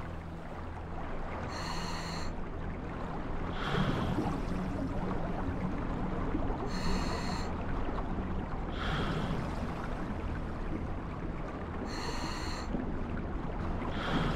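Water rumbles low and steady all around.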